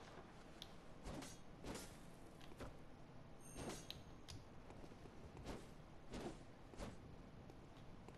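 Blades swing and strike with sharp whooshes and thuds.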